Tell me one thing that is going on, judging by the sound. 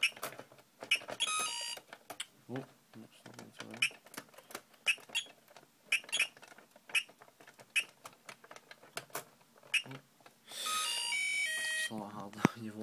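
A handheld electronic game plays short, high electronic beeps and a brief beeping tune.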